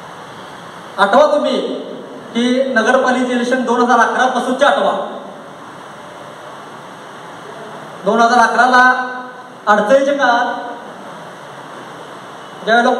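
A man speaks into a microphone over a loudspeaker in an echoing hall, in bursts with pauses.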